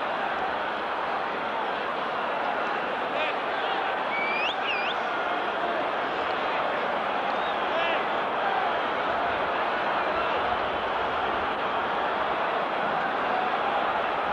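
A stadium crowd murmurs steadily outdoors.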